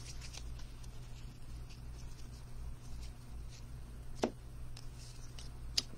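Trading cards slide softly against each other.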